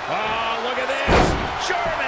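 A heavy body slams onto a wrestling ring mat with a loud thud.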